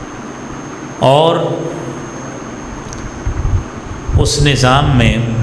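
A middle-aged man speaks with emotion into a microphone, heard through a loudspeaker in an echoing space.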